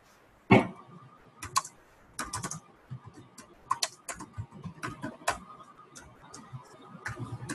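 Keyboard keys click rapidly as someone types.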